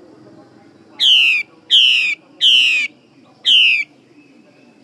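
A caged bird sings four loud, sharp whistled phrases close by.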